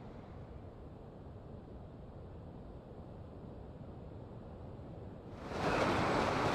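Wind rushes steadily during a high fall.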